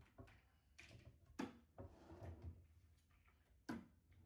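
Plastic bottles knock lightly on a table.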